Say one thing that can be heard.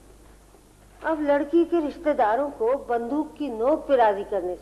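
A middle-aged woman speaks with animation nearby.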